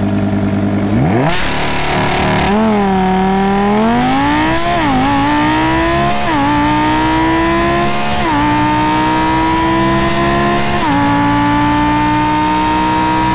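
A sports car engine roars loudly, climbing in pitch and dropping briefly at each gear change.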